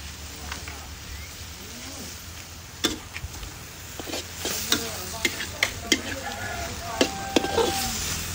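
Beef sizzles in hot oil in a wok.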